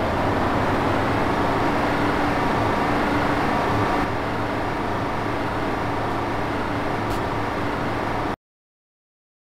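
Bus engines drone steadily.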